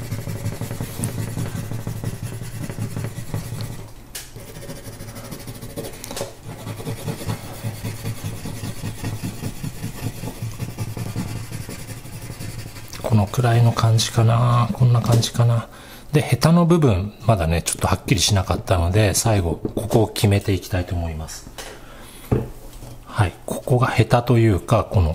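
A pencil scratches rapidly across paper.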